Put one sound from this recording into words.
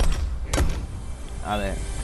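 A pickaxe strikes a wall.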